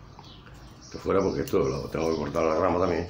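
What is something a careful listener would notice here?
An older man speaks calmly close by.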